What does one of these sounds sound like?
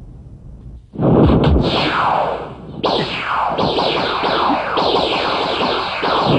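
Robes swish and whoosh loudly as a man leaps and spins.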